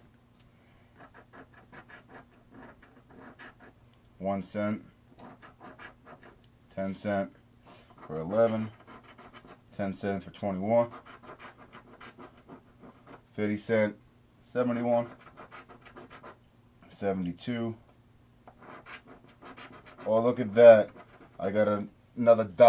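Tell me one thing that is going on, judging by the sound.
A coin scratches in short, quick strokes across a card.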